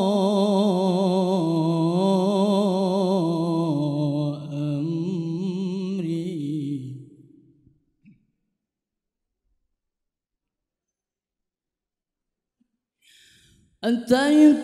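A young man sings a long, wavering melody through a microphone, loud and close.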